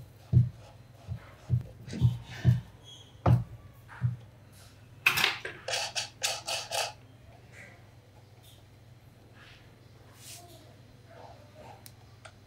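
A screwdriver clicks and rattles against metal parts.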